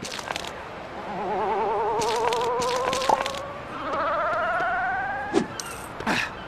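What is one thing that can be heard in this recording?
A rising, twinkling magical tone plays as a giant beanstalk sprouts and grows.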